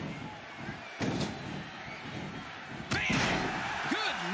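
Bodies slam hard onto a wrestling mat.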